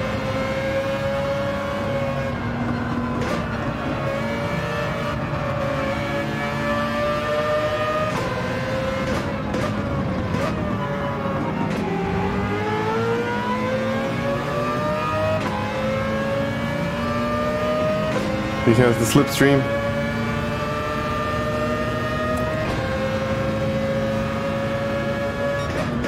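A racing car engine roars, rising in pitch and dropping with each gear change.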